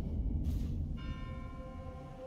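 Ringing chime tones sound and slowly fade.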